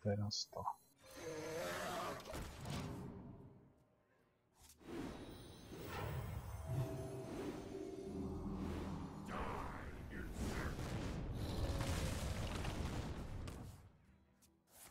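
Magical chimes and whooshes play as cards are cast.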